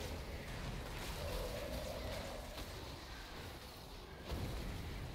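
Game spell effects whoosh and crackle with sharp bursts.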